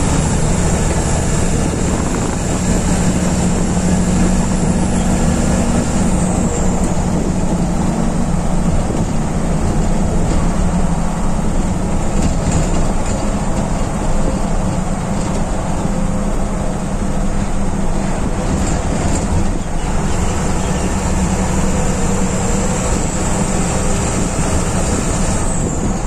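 A bus engine drones steadily from close by.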